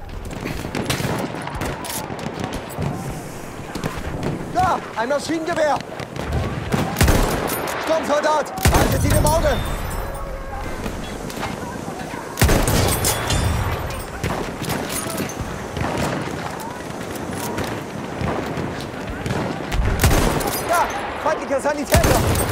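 A bolt-action rifle fires sharp single shots.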